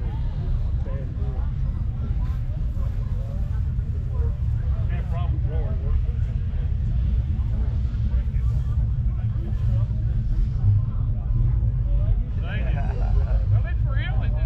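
A crowd chatters faintly in the distance outdoors.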